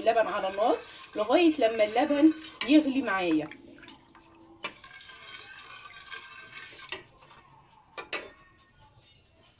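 A metal ladle stirs liquid in a pot.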